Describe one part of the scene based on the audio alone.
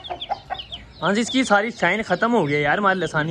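A chicken clucks and cackles nearby.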